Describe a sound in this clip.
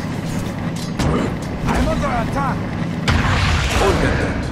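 Weapons strike and thud against creatures.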